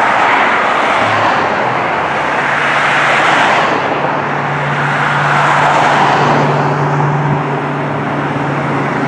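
A fire engine's air horn blares loudly.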